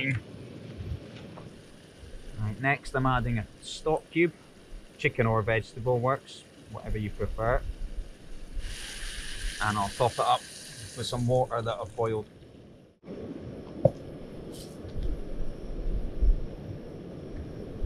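A camping stove burner roars steadily.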